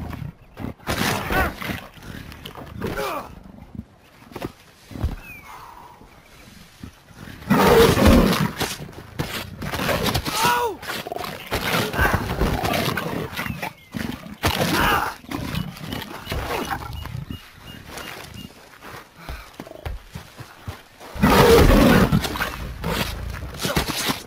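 A big cat growls and snarls while mauling its prey.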